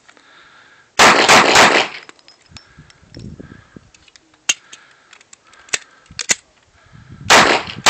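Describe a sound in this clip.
A pistol fires sharp shots outdoors, one after another.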